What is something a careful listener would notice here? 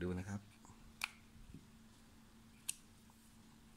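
A knife clicks sharply as its parts are handled.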